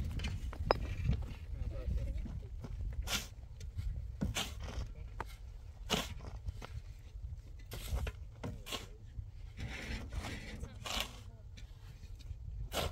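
A metal bar pounds into soil and stone with dull thuds.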